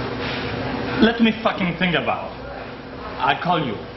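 A middle-aged man speaks intently in a low voice nearby.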